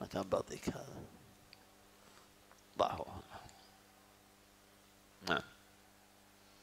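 A man speaks in short bursts into a microphone.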